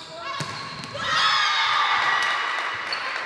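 Young women players shout and cheer loudly.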